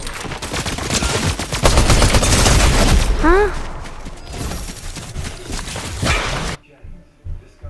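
Gunfire crackles loudly from a game.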